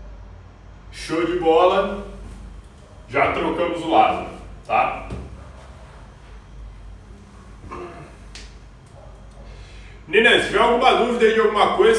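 A young man talks calmly nearby, in a small echoing room.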